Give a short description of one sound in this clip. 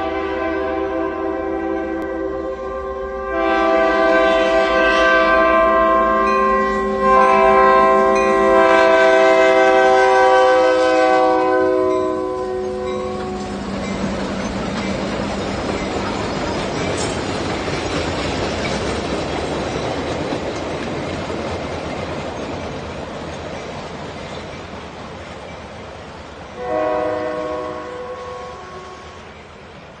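A locomotive horn blows in long chords, loud and close.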